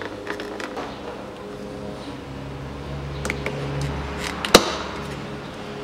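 A plastic pry tool clicks a trim piece loose with a sharp snap.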